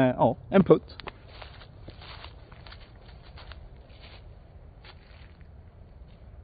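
Footsteps rustle through dry leaves.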